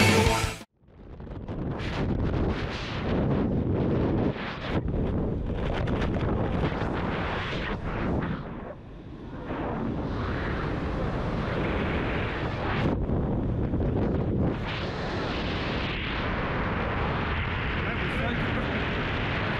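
Strong wind rushes and buffets a microphone during a skydiving freefall.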